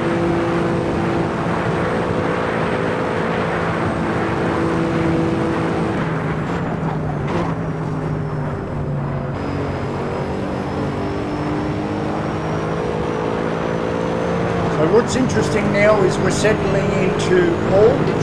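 A racing car engine roars steadily at high revs, dropping in pitch as it shifts down and then climbing again.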